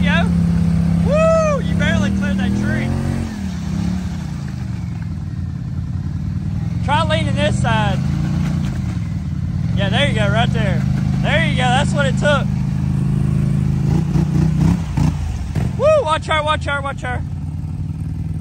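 An off-road quad bike engine rumbles steadily nearby.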